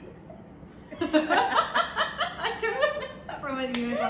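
Young women laugh loudly close by.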